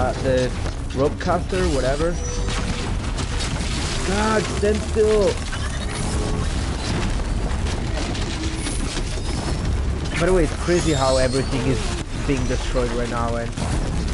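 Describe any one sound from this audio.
Heavy metal machines stomp and clank.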